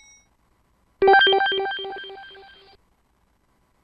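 A computer quiz game plays a bright chiming jingle for a correct answer.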